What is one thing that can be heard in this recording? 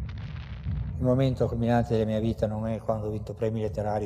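An elderly man speaks softly and close.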